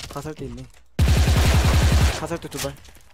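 A video game assault rifle fires in automatic bursts.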